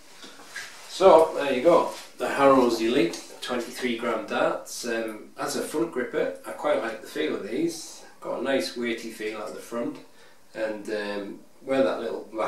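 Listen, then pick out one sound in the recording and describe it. A man talks calmly and clearly.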